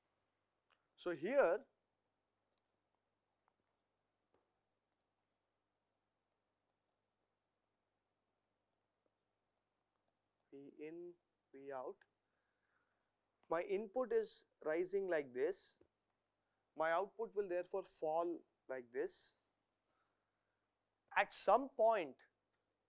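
A man speaks calmly and clearly into a close microphone, with pauses.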